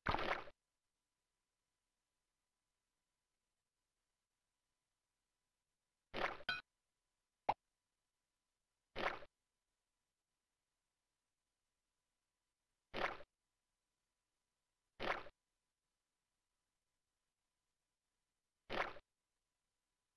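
Short bursts of game sound effects play now and then, with long silences between them.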